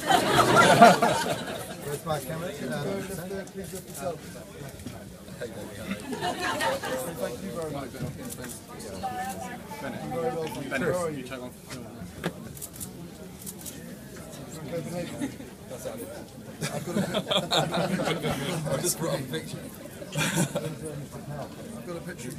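A man talks on a phone with animation, close by.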